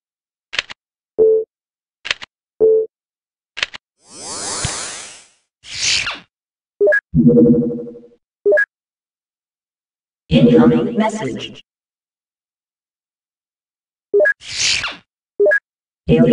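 Short electronic beeps and chimes sound as menu buttons are clicked.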